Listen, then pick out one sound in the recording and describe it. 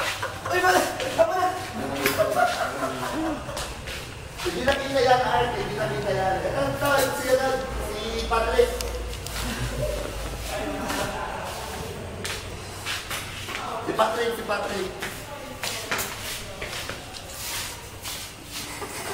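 Young boys talk and laugh loudly, close by.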